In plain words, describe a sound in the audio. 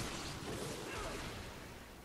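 A chain whip lashes and cracks.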